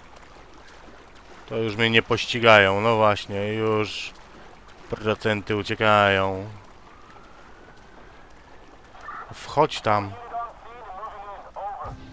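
Water splashes softly as a swimmer strokes through it.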